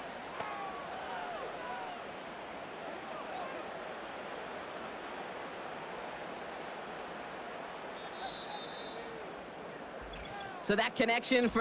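A stadium crowd roars steadily in the distance.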